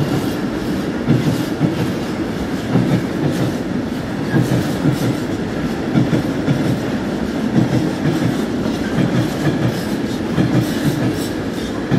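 A freight train rumbles past close by, its wheels clattering rhythmically over rail joints.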